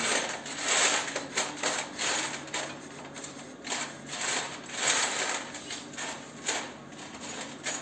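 A metal exhaust pipe scrapes and rattles as it is twisted by hand.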